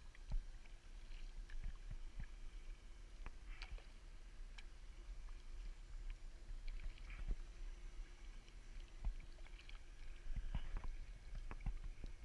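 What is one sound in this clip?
A paddle dips and splashes softly in calm water.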